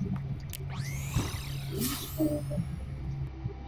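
A shimmering electronic whoosh sweeps upward.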